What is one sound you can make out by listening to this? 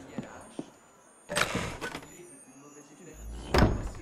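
A heavy wooden chest lid creaks open.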